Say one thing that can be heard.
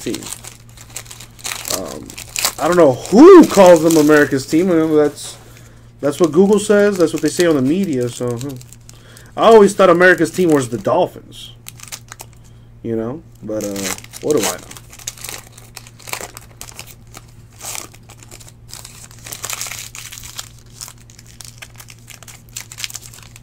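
A foil wrapper crinkles and rustles between fingers.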